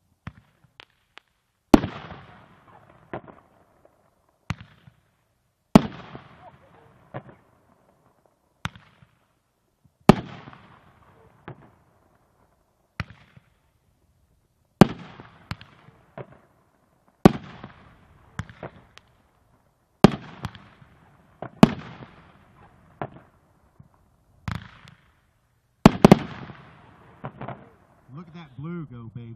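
Fireworks explode with loud booming bangs that echo away.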